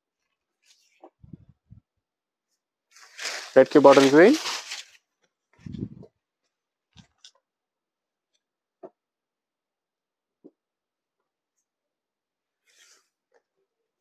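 Silk cloth rustles and swishes as it is shaken open and spread out.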